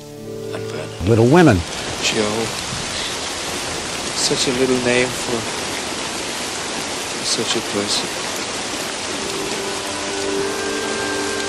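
Rain falls steadily, pattering outdoors.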